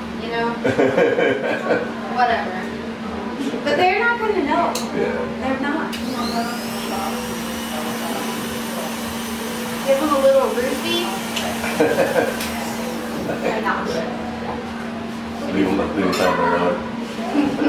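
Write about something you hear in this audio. A woman talks and laughs nearby.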